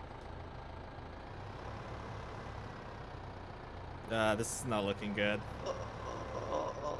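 A tractor engine rumbles steadily at idle.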